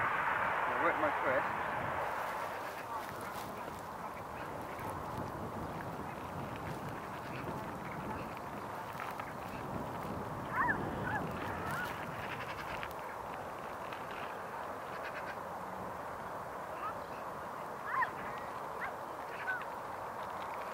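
Strong wind blows and buffets outdoors.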